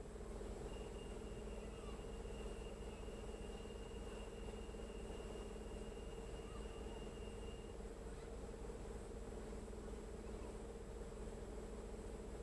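A car engine hums, heard from inside the cabin.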